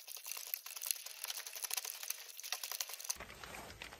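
A rake scratches through snow and debris.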